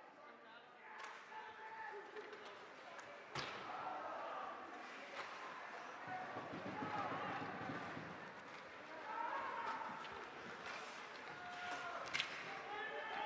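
Sticks and a puck clack on the ice.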